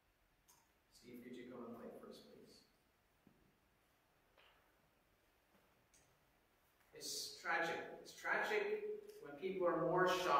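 A man speaks calmly through a microphone in an echoing hall, with long pauses.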